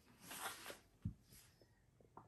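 A glass bottle knocks down on a table.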